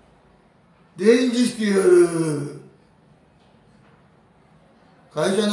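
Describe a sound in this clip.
A middle-aged man speaks close up, with animation.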